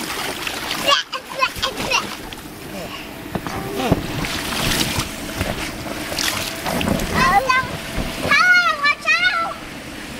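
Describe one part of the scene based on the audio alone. A young girl talks and squeals excitedly close by.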